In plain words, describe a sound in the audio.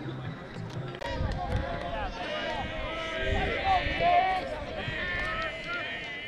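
A group of young men shout and cheer at a distance.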